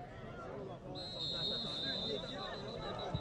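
A referee's whistle blows in a long steady shrill.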